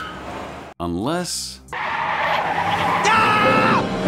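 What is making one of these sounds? A small child's voice shouts excitedly, close by.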